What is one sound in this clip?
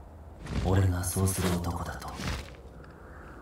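A young man speaks softly and calmly.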